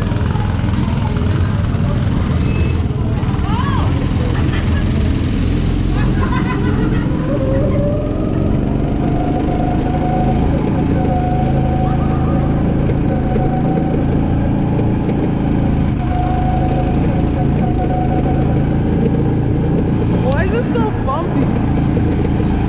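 A small go-kart engine buzzes loudly and steadily close by.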